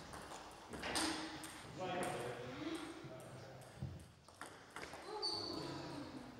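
A table tennis ball clicks back and forth across a table in an echoing hall.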